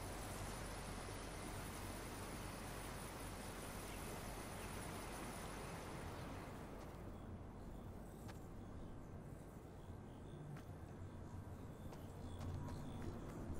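Soft footsteps shuffle on grass.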